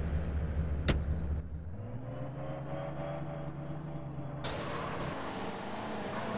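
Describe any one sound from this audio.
A car engine hums and revs up.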